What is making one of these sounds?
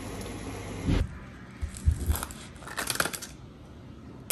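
Kitchen scissors snip through food.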